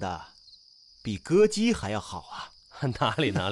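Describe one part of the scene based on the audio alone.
A young woman speaks warmly, close by.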